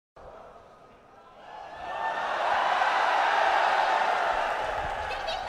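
A large crowd cheers and screams in a big echoing hall, swelling louder.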